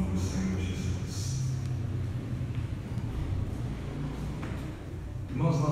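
A man speaks into a microphone, heard over loudspeakers in an echoing hall.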